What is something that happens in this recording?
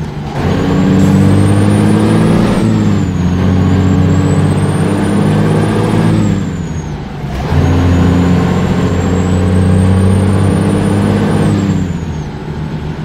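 A truck engine roars as it speeds up, dropping briefly between gear changes.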